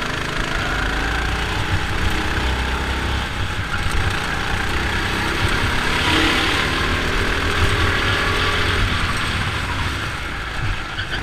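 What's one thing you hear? A small kart engine buzzes loudly close by, rising and falling in pitch.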